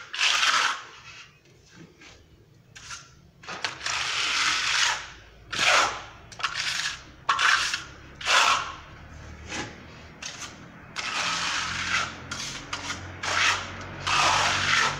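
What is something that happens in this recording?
A scraper rasps against a wall in short, repeated strokes.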